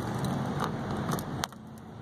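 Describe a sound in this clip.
A plastic number card on a sign flips over with a click.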